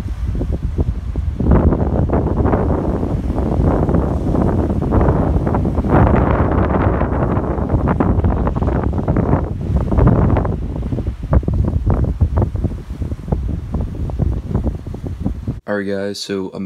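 Waves splash against a seawall.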